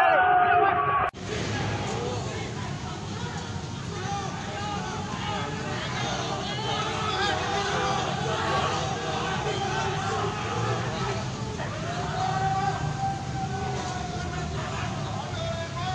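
A crowd of young men shouts and chants loudly outdoors.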